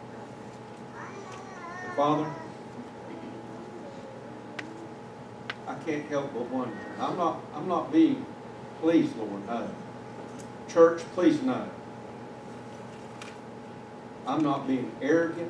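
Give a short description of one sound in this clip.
A middle-aged man speaks calmly into a microphone in a large echoing room.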